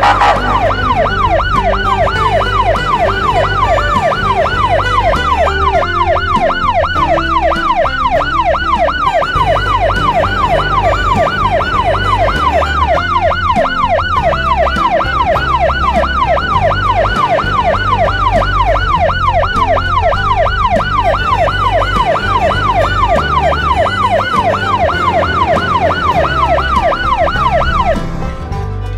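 A police car siren wails fast up and down.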